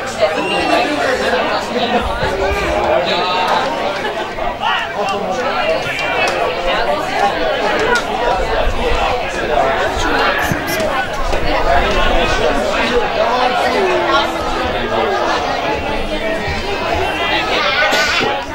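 Men shout to each other across an open field.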